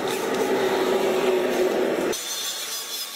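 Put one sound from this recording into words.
An electric drill whirs as it bores into wood.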